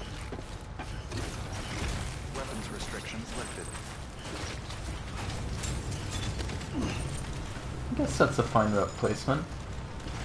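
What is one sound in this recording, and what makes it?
Heavy boots step across rocky ground.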